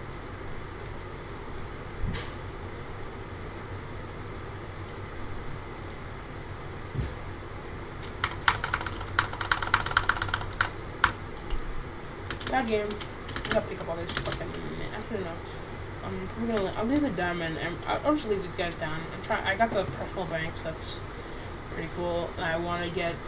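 Game menu clicks tick sharply now and then.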